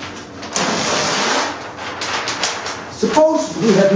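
A large sheet of paper rustles as it is turned over.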